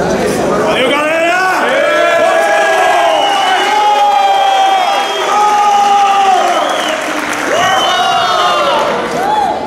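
A group of men sing and chant together loudly.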